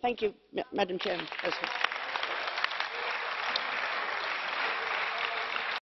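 Applause fills a large hall.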